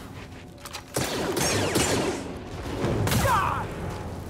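A lightsaber clashes and strikes sharply.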